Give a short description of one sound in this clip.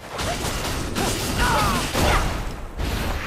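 A loud blast bursts with crackling sparks.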